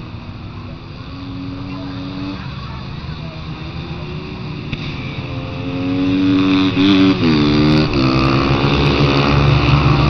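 Dirt bike engines whine and rev as the bikes race past, growing loud up close.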